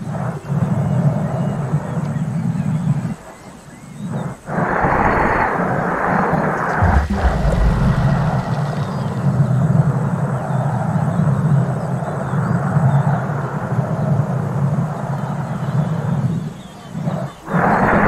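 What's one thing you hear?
A glass ball rolls along wooden boards with a steady rumble.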